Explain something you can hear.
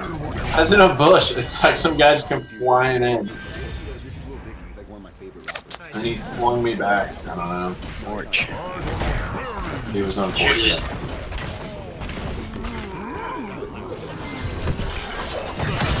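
Magic blasts and weapon clashes ring out in a fantasy battle.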